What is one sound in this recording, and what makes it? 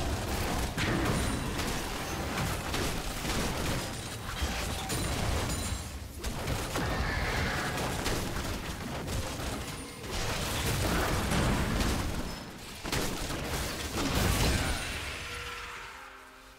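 Fantasy battle sound effects clash and burst in rapid succession.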